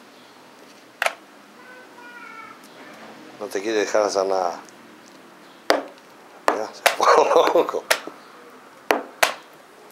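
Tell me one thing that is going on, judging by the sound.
Chess pieces click down on a board.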